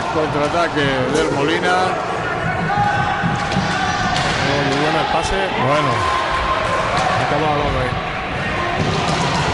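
Hockey sticks clack against a ball.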